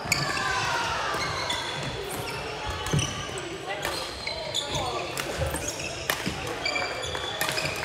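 Sneakers squeak on the hard court floor.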